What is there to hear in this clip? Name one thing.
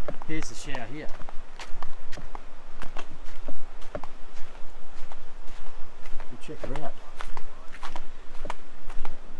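Footsteps crunch on a sandy path outdoors.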